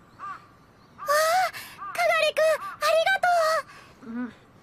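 A young girl exclaims happily.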